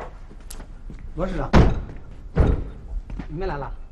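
A car door thumps shut.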